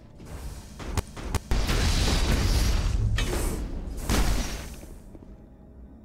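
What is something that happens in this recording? Rapid gunfire crackles at close range.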